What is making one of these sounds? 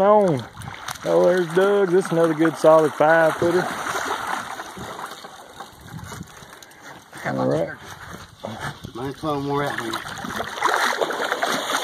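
A large fish splashes in the water.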